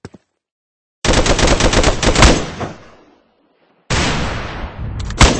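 A rifle fires rapid bursts of loud gunshots.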